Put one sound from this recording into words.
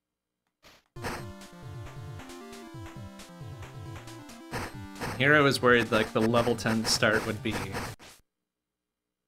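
Electronic game music plays in quick beeping tones.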